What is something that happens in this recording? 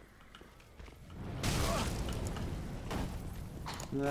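Game combat sounds clash and roar loudly.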